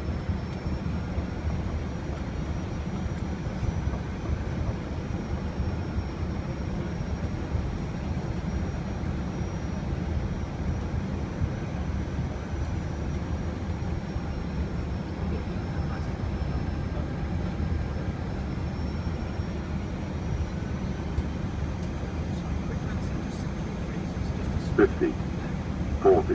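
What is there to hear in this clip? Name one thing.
Jet engines and airflow roar steadily.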